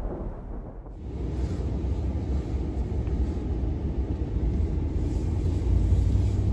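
A vehicle engine rumbles low and steady.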